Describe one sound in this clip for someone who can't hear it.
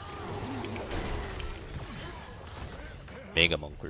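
Fiery spell effects blast and whoosh in a game.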